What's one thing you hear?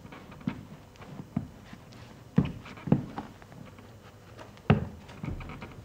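Footsteps knock on a hard floor.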